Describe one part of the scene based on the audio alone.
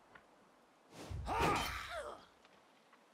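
Blades strike and clash in a fight.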